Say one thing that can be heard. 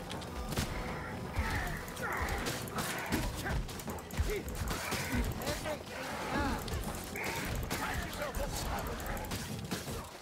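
Heavy weapon blows thud and squelch into flesh.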